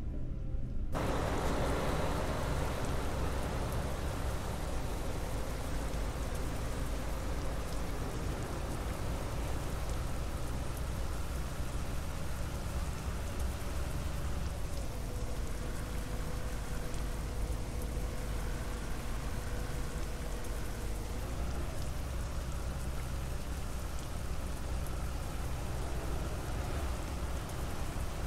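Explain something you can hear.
A bus engine hums steadily as the bus drives along a highway.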